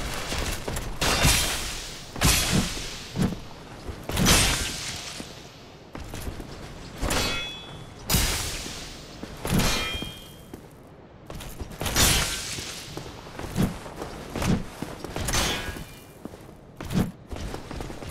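Metal weapons clash and strike armour in heavy, ringing blows.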